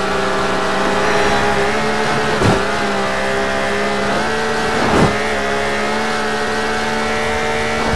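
A car engine hums steadily at high revs.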